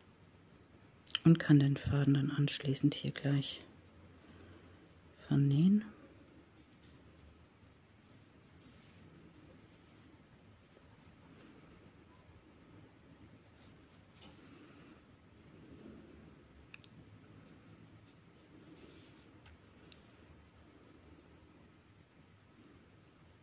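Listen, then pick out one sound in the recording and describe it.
A needle draws yarn through knitted fabric with a soft rustle.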